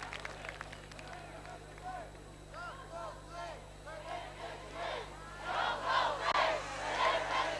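An elderly man reads aloud slowly into a microphone, heard over loudspeakers outdoors.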